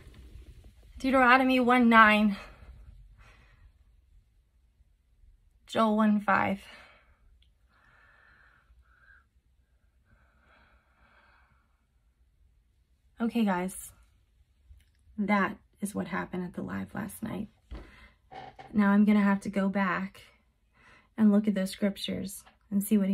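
A woman speaks close by, emotionally and haltingly, with long pauses.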